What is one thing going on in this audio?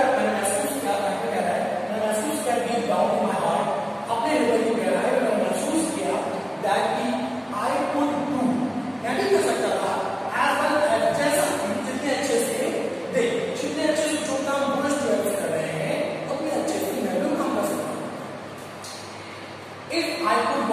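A man lectures with animation, close by.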